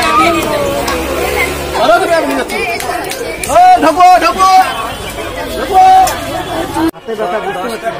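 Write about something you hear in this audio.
Men shout loudly nearby.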